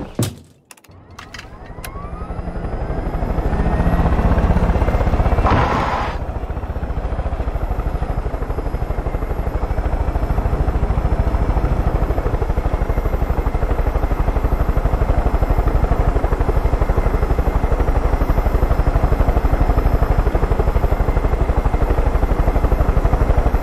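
A helicopter engine starts up and its rotor thumps rapidly and steadily.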